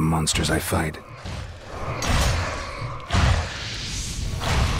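Weapons clash and bones clatter in a fight.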